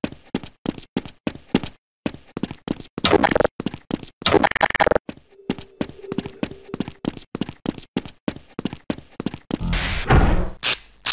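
Footsteps clatter quickly on a hard floor.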